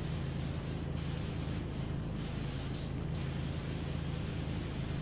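A pressure washer sprays water in a steady, hissing rush.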